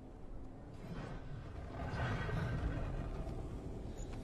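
Heavy wooden gate doors creak open.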